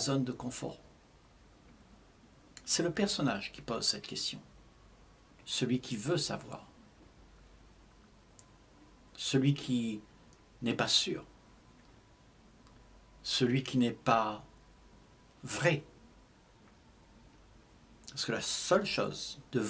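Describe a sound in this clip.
An elderly man speaks calmly and slowly close to a microphone, with long pauses.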